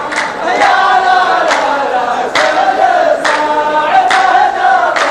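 A group of men sing together loudly.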